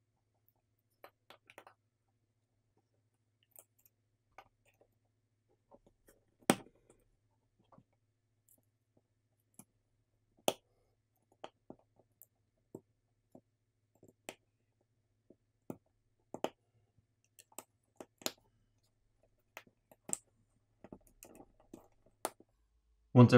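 Small plastic parts click and tap as a phone is taken apart by hand.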